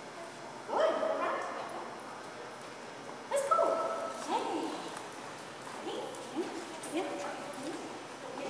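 A middle-aged woman gives a dog short, upbeat commands in a large, echoing hall.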